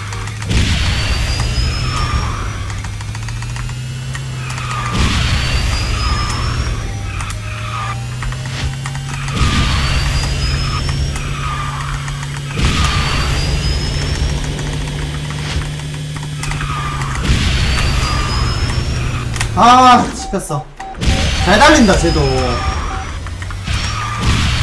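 A racing game's engine hums steadily at high speed.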